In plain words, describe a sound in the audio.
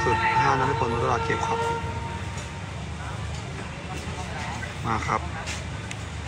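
A young man speaks close by.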